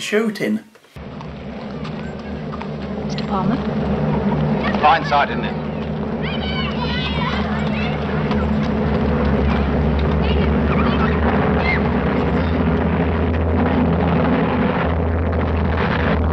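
Aircraft engines drone overhead, growing louder.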